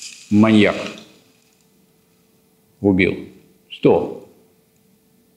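A man speaks in short, loud bursts in a room with some echo.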